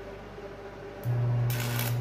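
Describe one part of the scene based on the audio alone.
A welding arc buzzes and crackles loudly up close.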